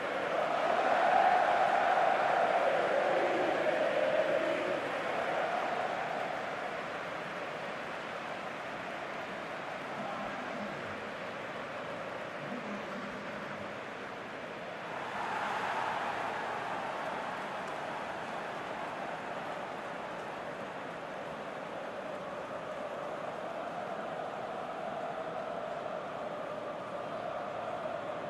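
A large stadium crowd roars and cheers steadily, louder at first and again briefly midway.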